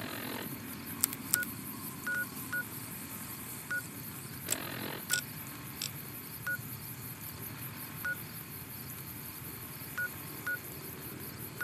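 A handheld device clicks and beeps as its menu is browsed.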